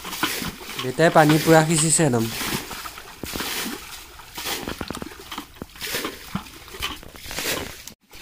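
A man gropes with his hands in shallow muddy water, sloshing it.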